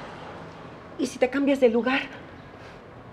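A second woman answers with agitation, close by.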